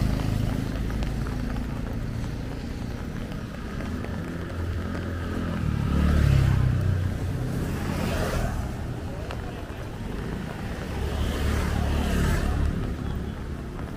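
Motorbikes pass close by on a wet road, their tyres hissing.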